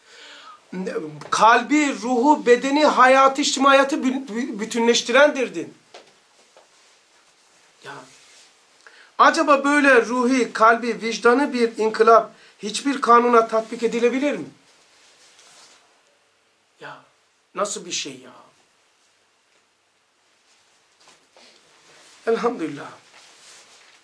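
An older man speaks calmly and with emphasis, close by.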